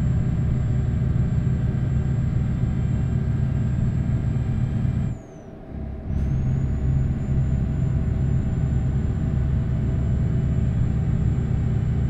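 A truck engine hums low and steadily while driving.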